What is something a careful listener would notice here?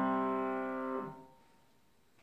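A piano chord rings out and fades.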